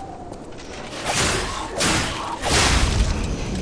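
Wooden debris splinters and crashes apart.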